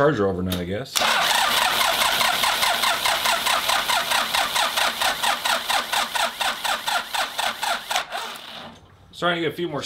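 A diesel engine runs with a rapid, even knocking.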